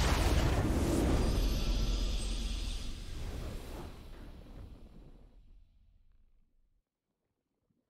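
A triumphant game fanfare swells and fades away.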